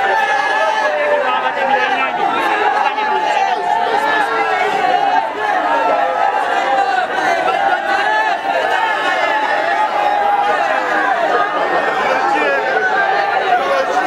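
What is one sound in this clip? A dense crowd of men and women shout and talk over one another close by.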